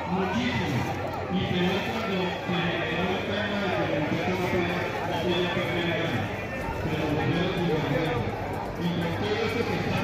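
A crowd of people shouts and chatters outdoors.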